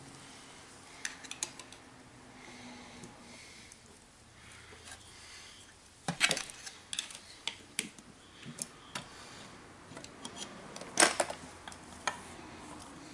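A metal tool scrapes and clicks against a metal housing.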